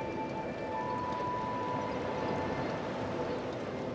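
Menu selections click with short chimes.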